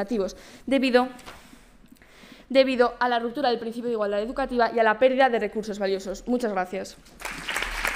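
A young woman speaks calmly into a microphone in a large hall.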